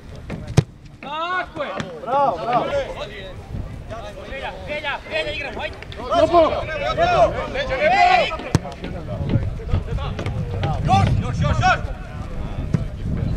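Men shout across an open field outdoors.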